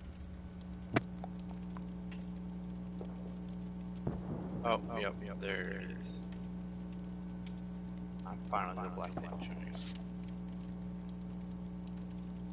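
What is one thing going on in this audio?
A campfire crackles steadily.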